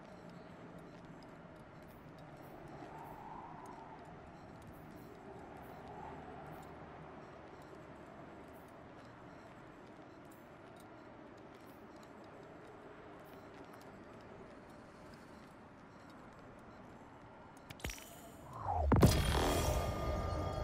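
Soft interface clicks tick as menu items are selected.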